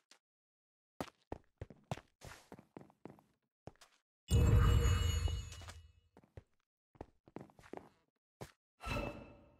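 A sword swings and strikes in quick blows.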